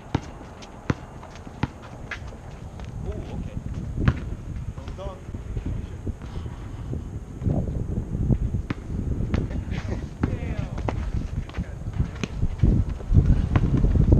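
A basketball bounces on hard ground outdoors.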